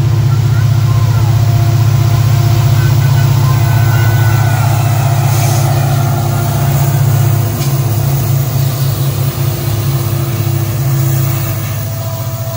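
A diesel locomotive engine rumbles loudly close by.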